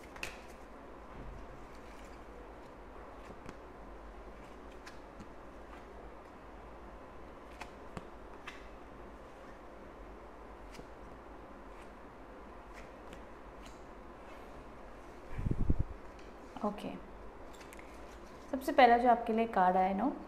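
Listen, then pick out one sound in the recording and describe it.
Playing cards rustle and tap softly as they are shuffled and laid down.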